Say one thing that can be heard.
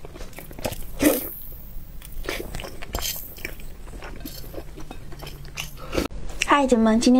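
A young woman chews and slurps wet food close to a microphone.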